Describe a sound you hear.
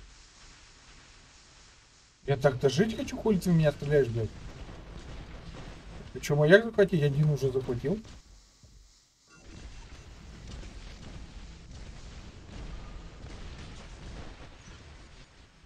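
Weapons fire and blasts rumble in a video game.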